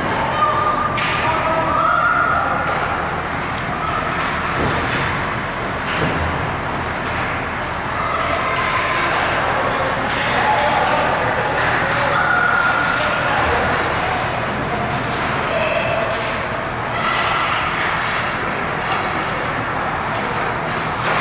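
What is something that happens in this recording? A crowd of children shouts and calls out in the echoing rink.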